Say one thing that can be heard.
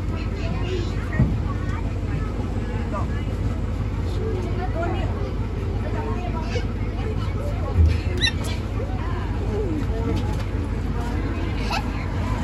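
A young boy talks happily close by.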